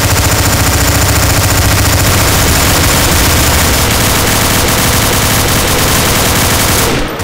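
A machine gun fires in rapid, nonstop bursts.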